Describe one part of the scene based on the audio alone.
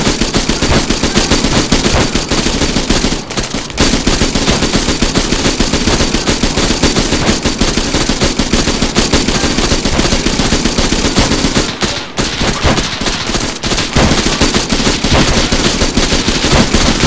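A machine gun fires long, rapid bursts close by.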